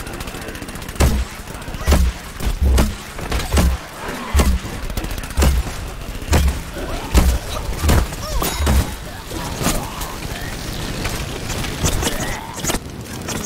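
A game character fires a weapon in loud repeated bursts.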